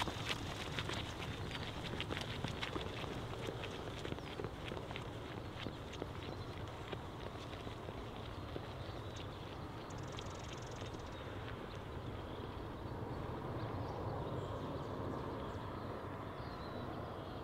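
Wind blows steadily outdoors across open grassland.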